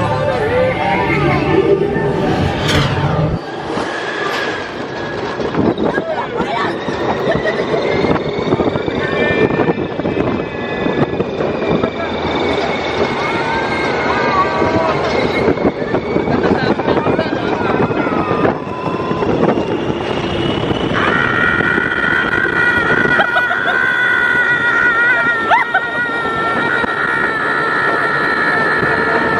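A ride's cars rattle and clatter along a track.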